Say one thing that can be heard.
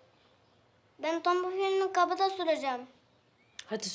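A young boy calls out brightly nearby.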